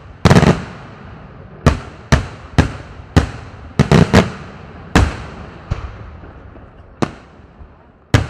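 Fireworks burst overhead with loud, sharp bangs that echo away.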